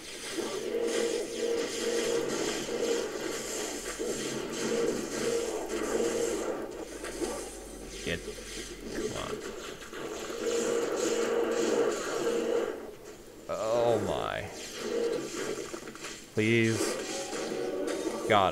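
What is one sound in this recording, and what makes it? Magic blasts of fire roar and crackle in quick bursts.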